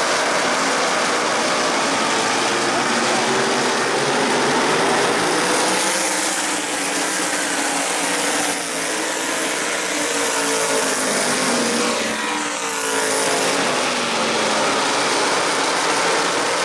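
Race car engines roar loudly as cars speed past.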